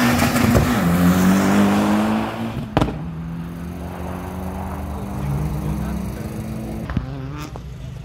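A rally car accelerates hard past at full throttle, then its engine fades into the distance.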